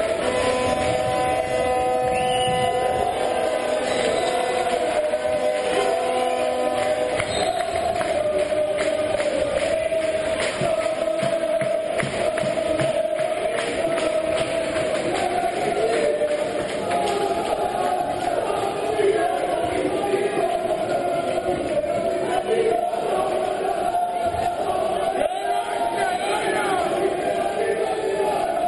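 A crowd cheers and chants steadily in a large echoing hall.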